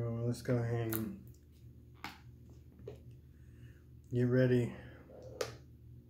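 A plastic water bottle crinkles in a hand.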